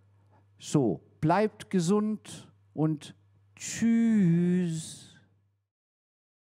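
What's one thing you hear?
A middle-aged man speaks with animation into a close microphone, his voice rising and falling.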